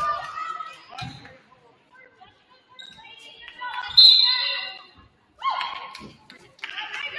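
A basketball thumps on the wooden floor.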